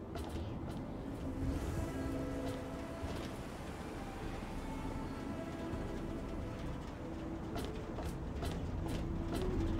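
Footsteps crunch over gravel and dirt.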